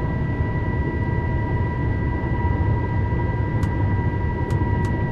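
An electric train motor whines with a steady high tone.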